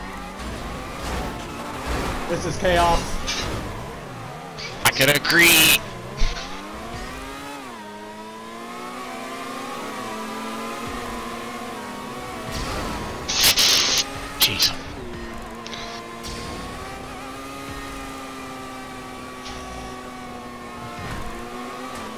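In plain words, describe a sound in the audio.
A racing car engine whines steadily, rising and falling in pitch as it speeds up and slows down.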